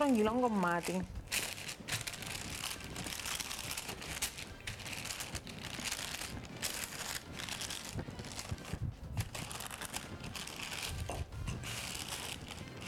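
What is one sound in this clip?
A wooden rolling pin rolls and rustles over dough on paper.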